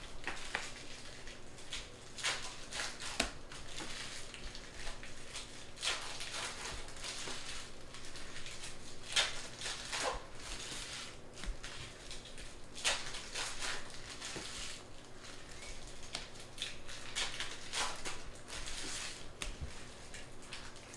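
Plastic card sleeves crinkle and rustle in hands close by.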